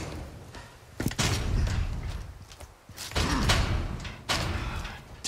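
A heavy metal gate rattles and creaks as it is pushed open.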